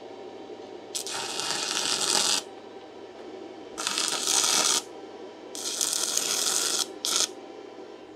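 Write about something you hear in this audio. A welding arc crackles and hisses in short bursts.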